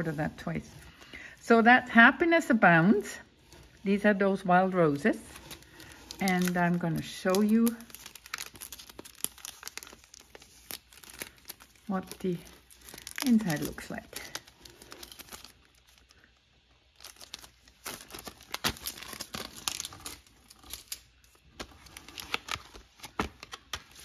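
Plastic packaging crinkles and clicks as it is handled.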